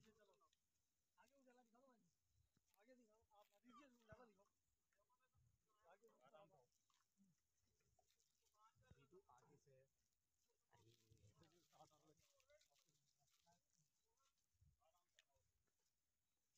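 Men talk to each other close by, outdoors at night.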